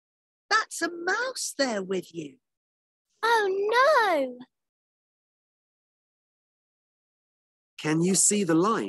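A woman speaks with animation over an online call, in short bursts with pauses.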